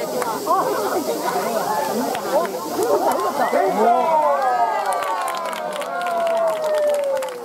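A crowd of children shouts and cheers excitedly nearby.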